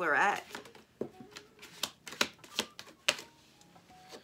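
A phone clicks and taps as it is handled.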